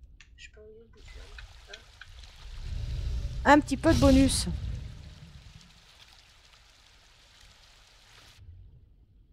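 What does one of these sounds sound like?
Water sloshes and splashes as a large animal swims.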